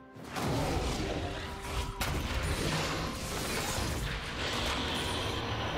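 Video game spell effects whoosh and crackle in quick bursts.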